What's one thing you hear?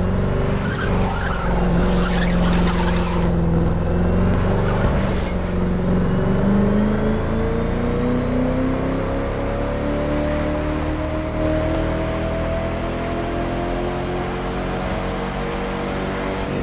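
A sports car engine roars and climbs steadily in pitch as the car speeds up.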